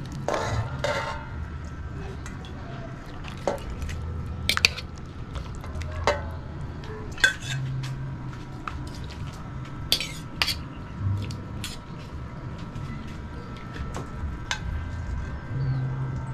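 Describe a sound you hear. Liquid sloshes and drips as meat is lifted from a pan.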